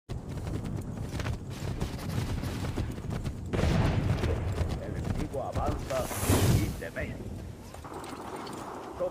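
Horse hooves thud rapidly over soft ground.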